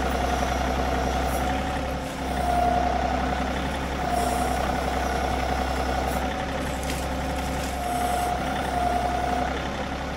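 An engine runs steadily with a low drone.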